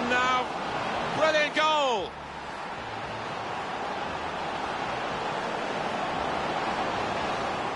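A stadium crowd roars and cheers loudly.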